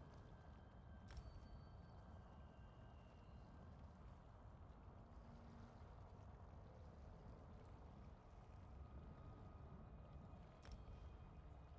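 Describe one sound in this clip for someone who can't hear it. A soft interface click sounds as a menu opens and closes.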